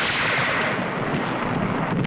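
Rifles fire in rapid cracks.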